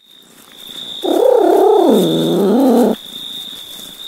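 A cat meows loudly in a long, wavering cry.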